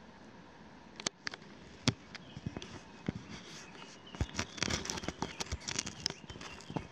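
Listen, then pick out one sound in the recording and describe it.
Beetles scratch and rustle in loose soil close by.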